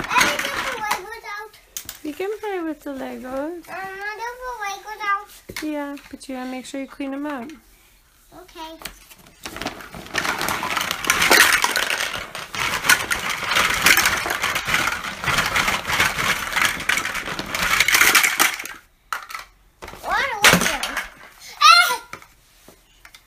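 A young child babbles and squeals nearby.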